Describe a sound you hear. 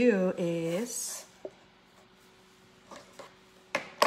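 A cookie is set down on a plastic board with a soft tap.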